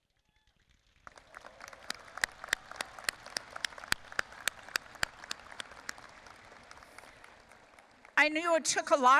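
An elderly woman claps her hands.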